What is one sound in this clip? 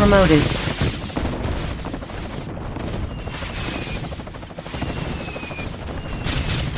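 Warship engines rumble low and steady.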